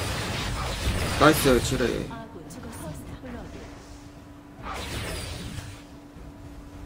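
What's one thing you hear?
Magic blasts and sword clashes burst out in a fight.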